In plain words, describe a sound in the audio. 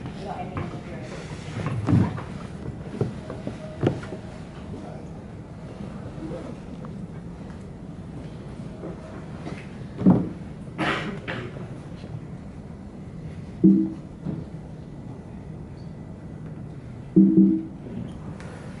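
A man speaks calmly over a loudspeaker in a large room.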